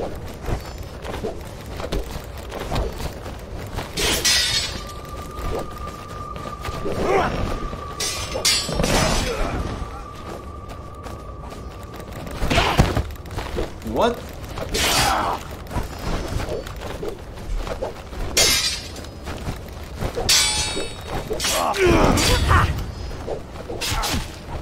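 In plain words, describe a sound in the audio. Swords clash and swish in a game fight.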